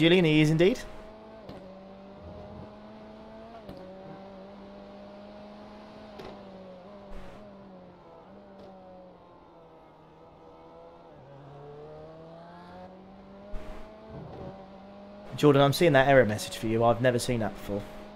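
A racing car engine drones steadily, its pitch shifting as it speeds up and slows down.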